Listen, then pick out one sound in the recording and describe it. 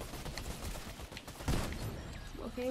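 A gun fires a sharp shot in a video game.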